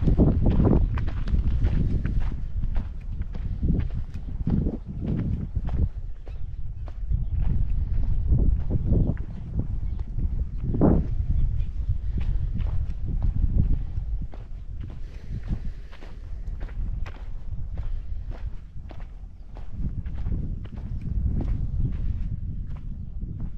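Footsteps crunch steadily on a dirt track.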